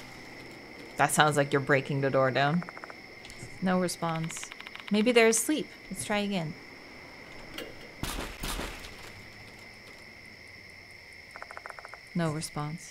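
A young woman speaks casually, close to a microphone.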